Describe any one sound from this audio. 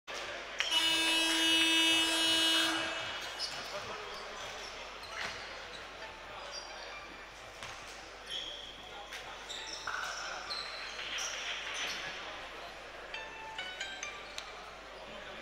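Sneakers squeak sharply on a court in a large echoing hall.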